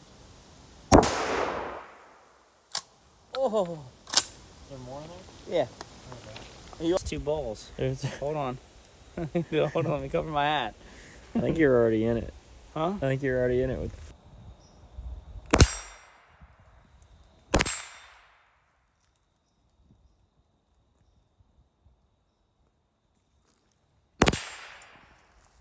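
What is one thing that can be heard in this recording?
A rifle fires loud sharp shots that echo through the woods.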